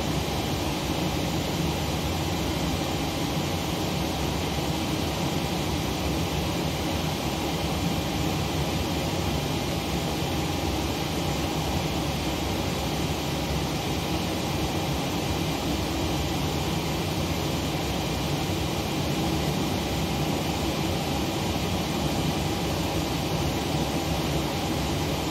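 A parked jet airliner hums steadily with a low engine drone.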